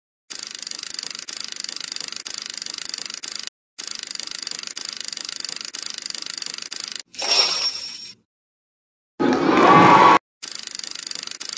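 Online slot machine reels spin with rapid electronic ticking.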